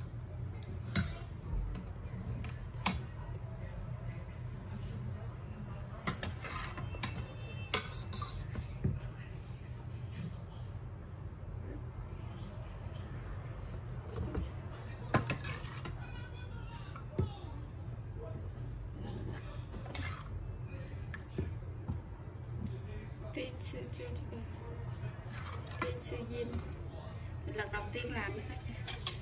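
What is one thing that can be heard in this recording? A plastic ladle clinks against a metal pot.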